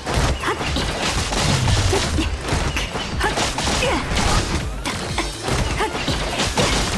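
Sword slashes whoosh and clang in rapid bursts.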